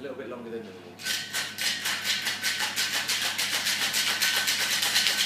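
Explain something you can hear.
Ice rattles rapidly in a metal cocktail shaker.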